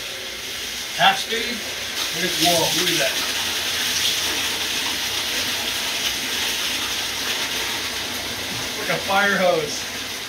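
Water gushes from a hose into a tank.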